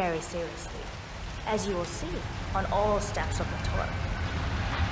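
A woman speaks calmly and clearly.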